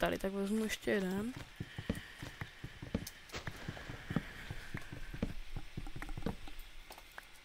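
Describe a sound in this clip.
An axe chops wood with short knocks.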